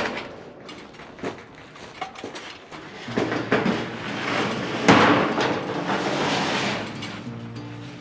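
A sheet metal panel thuds and scrapes against a steel frame.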